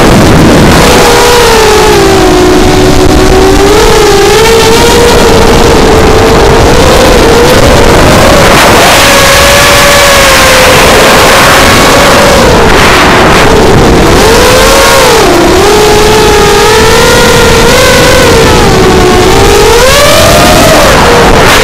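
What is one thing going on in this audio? Wind rushes loudly past a fast-flying drone.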